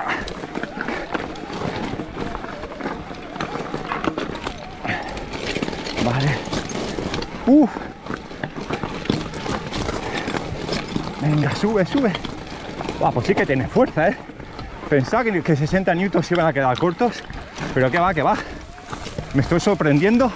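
Bicycle tyres crunch and rattle over loose stones.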